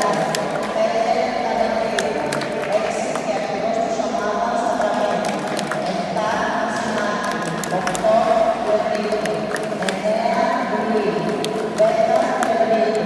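Swimmers splash through water.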